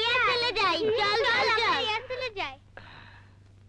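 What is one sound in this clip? Several young women shriek and shout excitedly close by.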